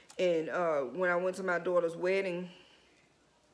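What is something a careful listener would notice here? A woman speaks close to a microphone in a drawn-out, singing way.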